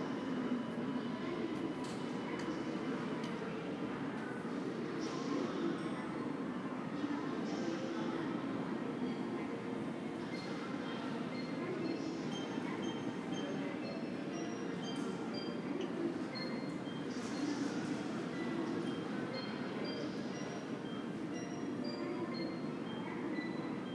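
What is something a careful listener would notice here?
A large echoing hall hums with a steady, low murmur of air and distant activity.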